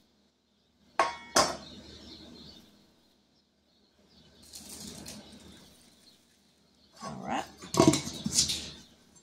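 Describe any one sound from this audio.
A metal lid scrapes and clinks against a glass jar.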